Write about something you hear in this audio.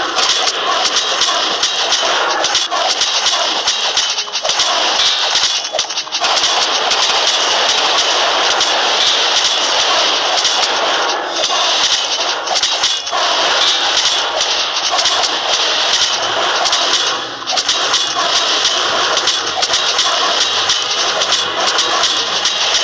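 Weapons clash and clatter in a busy battle.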